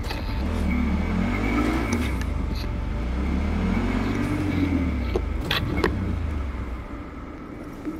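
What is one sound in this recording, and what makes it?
A motorbike engine hums and revs as the bike rides along.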